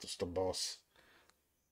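A man speaks briefly close to a microphone.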